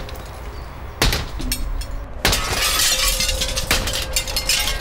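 An axe chops into wood with sharp knocks.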